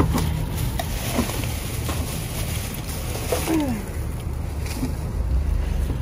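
Plastic bags rustle as they are lifted.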